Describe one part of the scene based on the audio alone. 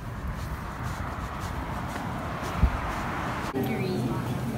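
Traffic rumbles along a street outdoors.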